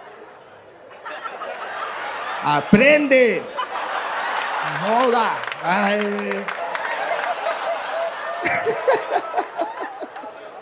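A large audience laughs and cheers in a big room.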